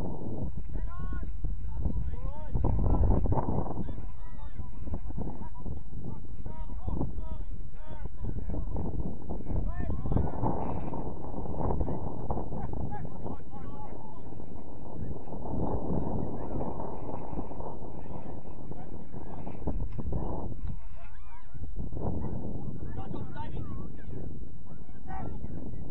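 Young men shout to each other in the distance outdoors.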